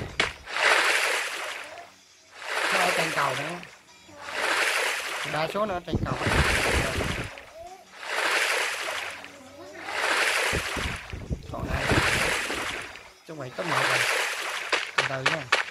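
Water splashes in rhythmic strokes as someone swims.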